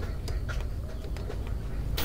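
Eggs clink together in a basket.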